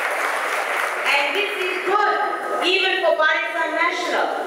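A woman shouts passionately into a microphone, heard through loudspeakers.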